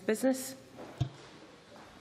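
A middle-aged woman speaks briefly and calmly through a microphone.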